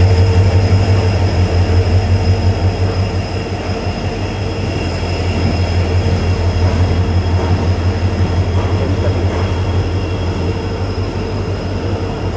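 A passenger train rolls slowly along the platform with a low steady rumble.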